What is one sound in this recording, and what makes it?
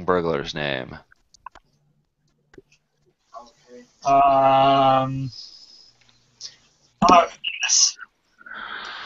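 Men talk in turn over an online call.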